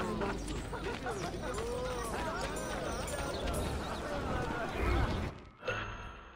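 Footsteps patter on cobblestones.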